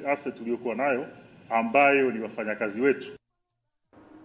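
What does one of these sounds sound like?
A man speaks clearly into a microphone, like a news presenter.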